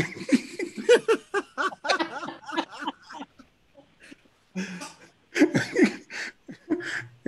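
A man laughs heartily, heard through an online call.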